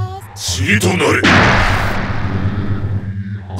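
A huge explosion booms.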